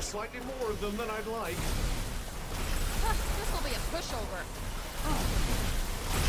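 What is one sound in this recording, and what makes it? A magic spell bursts with a shimmering whoosh.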